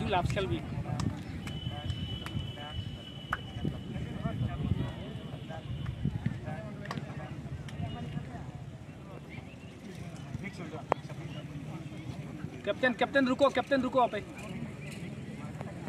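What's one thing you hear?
Young men talk and call out to each other outdoors.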